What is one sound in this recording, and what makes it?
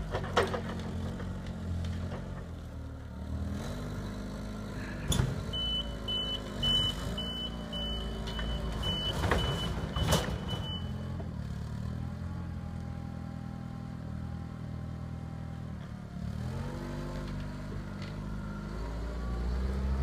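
A forklift engine idles and revs nearby.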